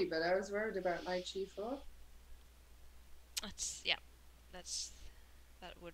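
A woman talks calmly through a microphone.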